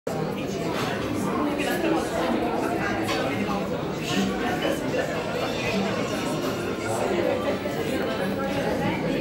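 Young women chat with each other nearby.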